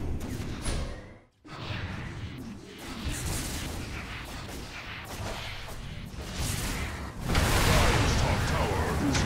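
Magic spells crackle and blast in a video game battle.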